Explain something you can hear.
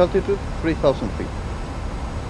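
A young man speaks briefly into a headset microphone.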